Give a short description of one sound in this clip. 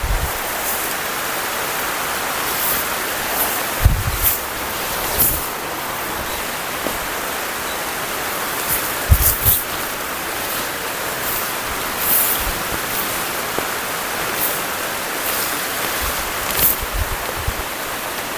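A plastic tarp rustles and flaps as it is handled.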